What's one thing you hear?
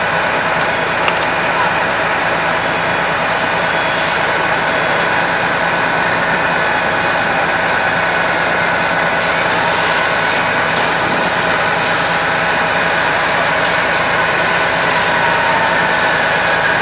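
A fire engine's diesel engine idles loudly and steadily close by.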